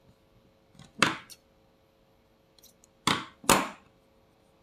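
Scissors snip through thread.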